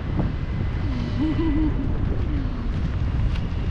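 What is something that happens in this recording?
A woman speaks briefly and excitedly over the wind.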